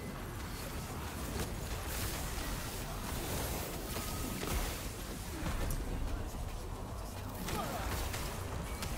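Electric spells crackle and burst in rapid bursts.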